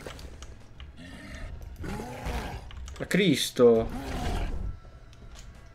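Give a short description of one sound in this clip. A zombie groans and growls.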